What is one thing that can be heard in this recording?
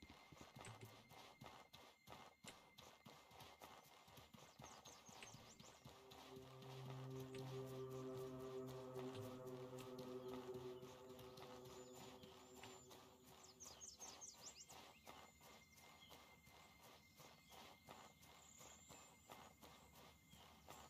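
Footsteps run quickly over grass and earth.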